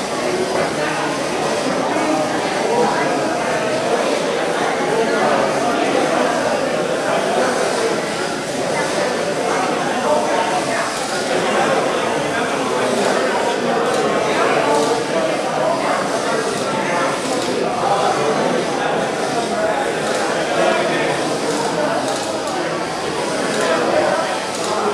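Small robots whir as they drive around.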